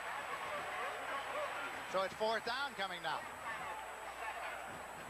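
A large crowd roars and cheers outdoors.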